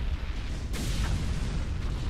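An explosion booms and rumbles deeply.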